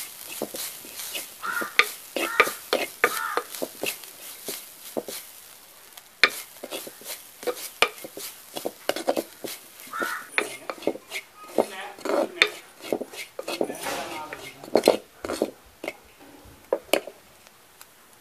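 A spoon scrapes and stirs coconut in a clay pot.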